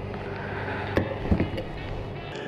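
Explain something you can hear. A fuel nozzle knocks against a tank.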